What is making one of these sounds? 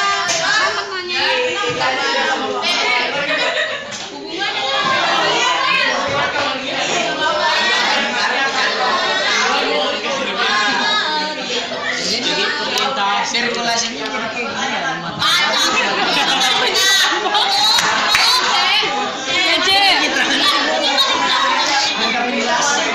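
Many teenagers chatter loudly and at once close by.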